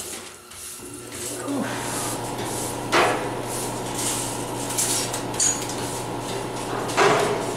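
A wire brush scrubs across a steel table.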